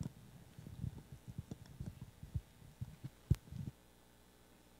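Footsteps thump across a stage.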